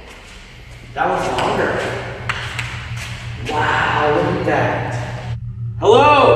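A young man talks quietly nearby in an echoing room.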